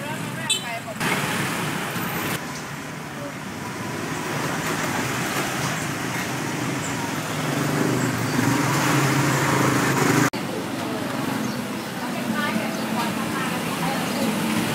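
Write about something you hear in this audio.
Motorbike engines putter past close by.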